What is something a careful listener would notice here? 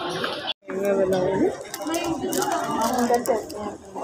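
Plastic wrapping crinkles as it is handled.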